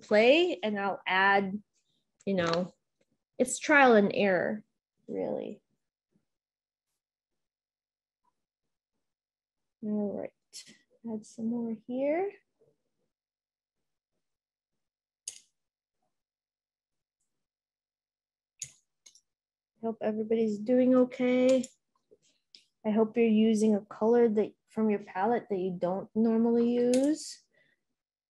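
A woman talks calmly into a close microphone, pausing now and then.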